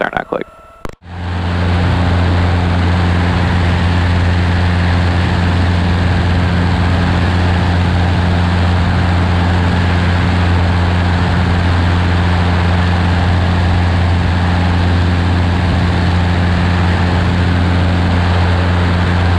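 A small plane's propeller engine drones loudly and steadily.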